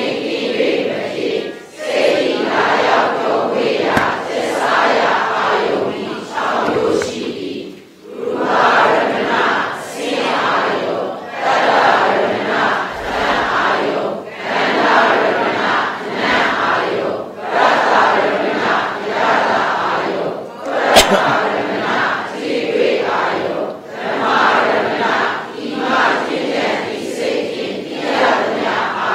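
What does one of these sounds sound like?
An elderly man reads aloud steadily into a microphone, with short pauses.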